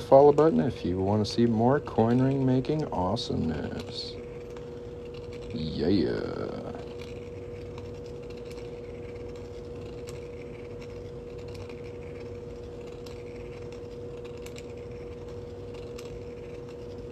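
A small metal tool scrapes and taps softly against metal.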